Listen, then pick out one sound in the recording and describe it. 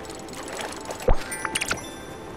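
A fish splashes as it is yanked out of the water.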